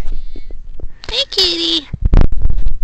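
A kitten meows loudly close by.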